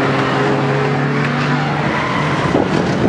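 A car engine rumbles and idles nearby.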